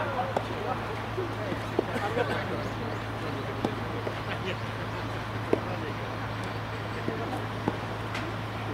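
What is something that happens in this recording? Tennis balls are struck with rackets outdoors, in sharp pops.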